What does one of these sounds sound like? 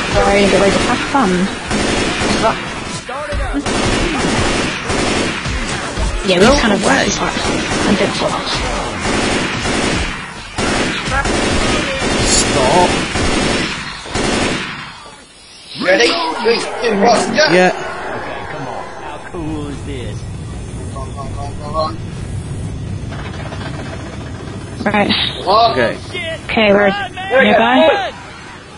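A young man talks with animation over an online call.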